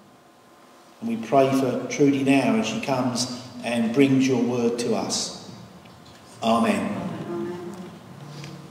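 An older man speaks calmly through a microphone in a large echoing hall.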